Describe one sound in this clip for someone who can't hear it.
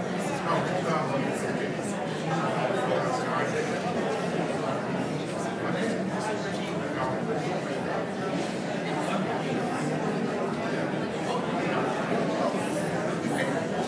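A crowd of men and women murmurs and chats quietly in a large echoing hall.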